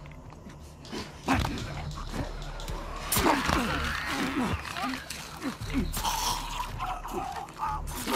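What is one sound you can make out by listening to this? A knife stabs with sharp, heavy thuds.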